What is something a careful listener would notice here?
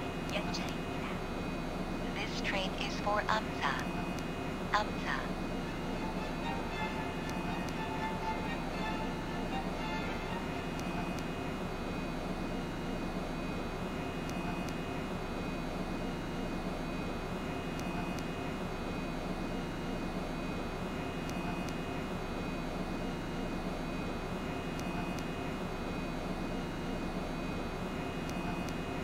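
A train hums and rumbles steadily through a tunnel.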